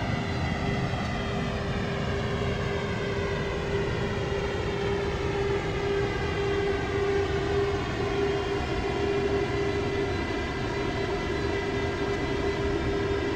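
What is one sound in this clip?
Jet engines hum and whine steadily as an airliner taxis.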